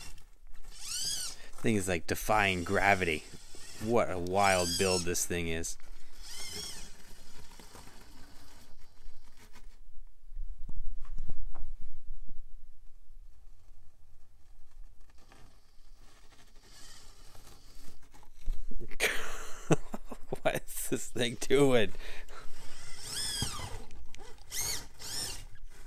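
A small electric motor whirs.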